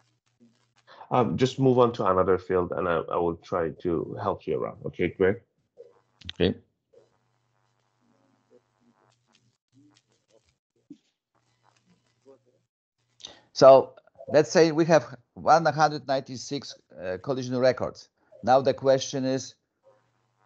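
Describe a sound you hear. A person speaks calmly over an online call.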